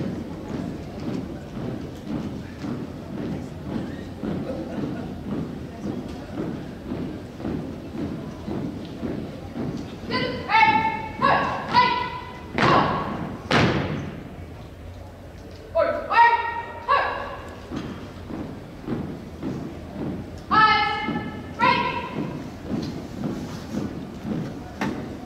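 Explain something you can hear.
Boots stomp in a steady marching rhythm on a hard floor in a large echoing hall.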